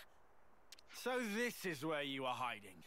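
A man speaks into a close microphone.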